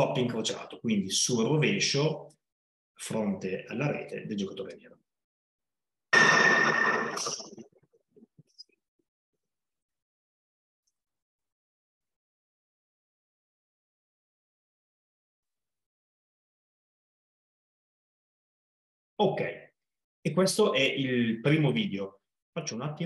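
A man talks calmly through an online call.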